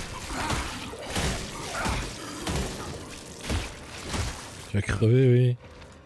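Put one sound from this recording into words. Heavy boots stomp hard, with wet, squelching thuds.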